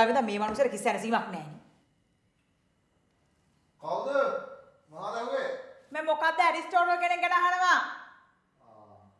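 A young woman speaks with emotion, close by.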